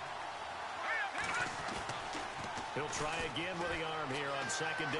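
Football players collide on the field.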